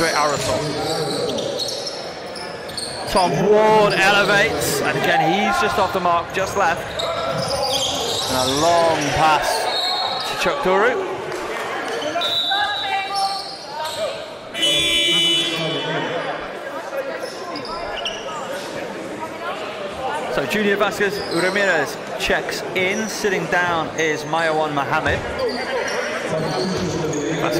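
Spectators chatter and call out in an echoing hall.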